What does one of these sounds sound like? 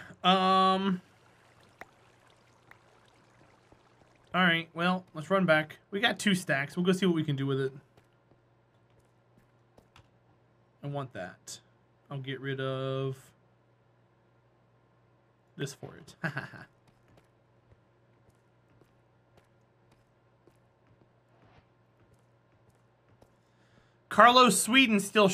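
A man talks with animation, close to a microphone, in short bursts.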